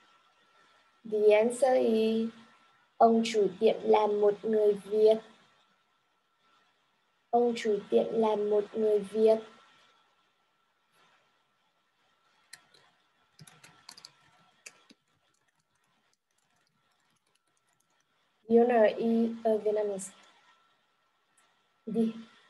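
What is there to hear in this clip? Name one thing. A young woman speaks calmly through an online call, in short bursts with pauses.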